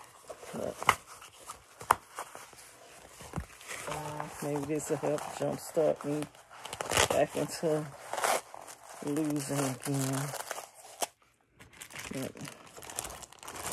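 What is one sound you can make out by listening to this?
Plastic wrapping crinkles and rustles as it is handled.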